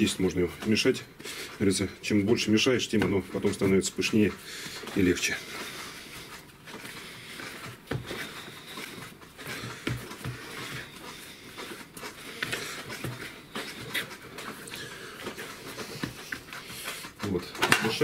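Soft dough squelches and thumps as it is kneaded in a bowl.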